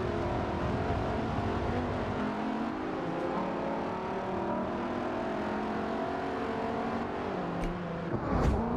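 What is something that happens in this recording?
A sports car engine roars loudly, its pitch climbing as it speeds up through the gears.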